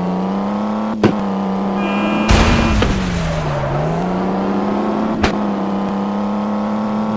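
A car engine hums steadily, its pitch dipping briefly before rising again.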